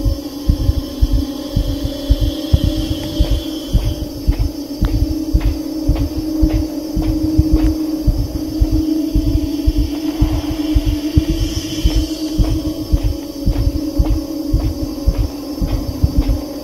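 A young woman gasps and exclaims close to a microphone.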